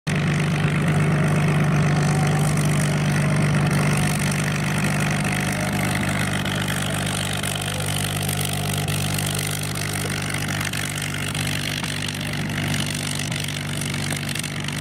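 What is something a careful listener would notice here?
A propeller plane's piston engine drones loudly as the plane taxis past and slowly fades.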